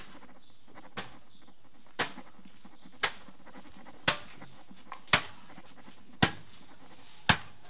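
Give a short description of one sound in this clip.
A man bangs on wood with sharp knocks at a steady pace.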